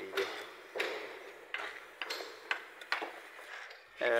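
A trowel taps and scrapes on bricks.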